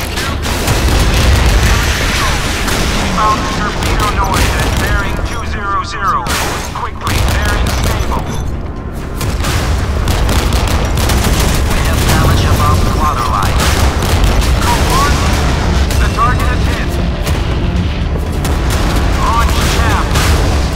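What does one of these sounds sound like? Naval guns fire in rapid booming bursts.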